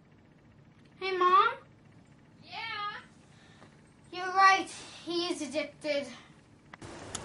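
A young boy talks with excitement close by.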